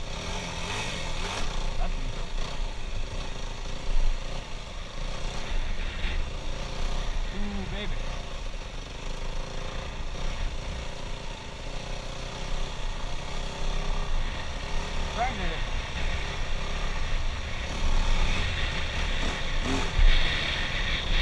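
A dirt bike engine revs and buzzes loudly up close.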